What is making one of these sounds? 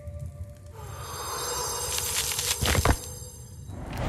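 A bright magical chime shimmers and rings out.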